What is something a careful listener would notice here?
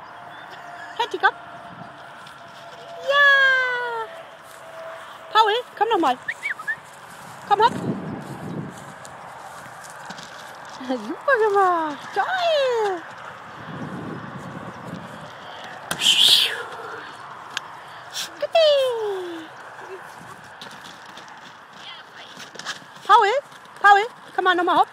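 A dog whines and yelps in high, falling cries.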